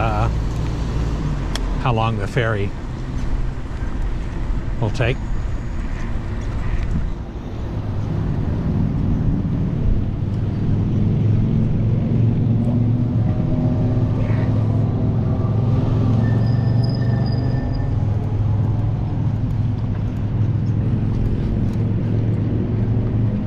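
Bicycle wheels roll steadily along a paved path.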